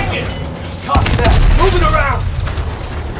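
A large explosion booms close by.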